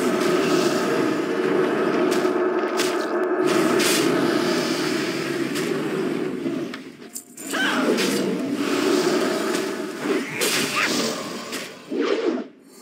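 Blows land on a large growling beast in a fight.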